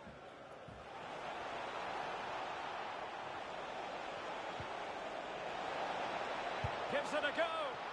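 A stadium crowd roars, growing louder.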